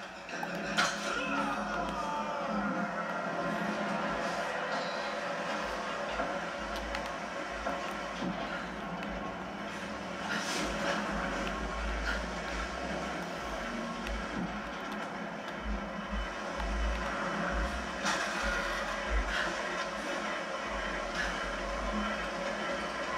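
Video game sounds play from a television speaker.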